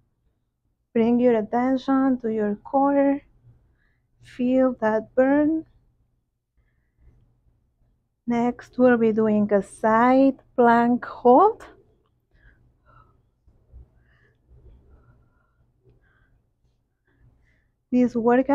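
A young woman speaks calmly and clearly, close by, in short bursts.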